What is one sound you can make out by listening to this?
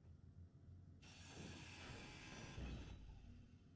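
A grinder whirs and screeches against metal.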